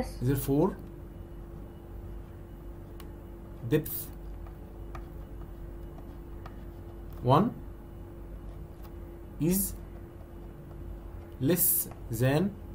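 A man speaks calmly in short phrases over an online call.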